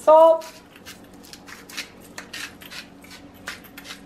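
A pepper mill grinds with quick rattling clicks.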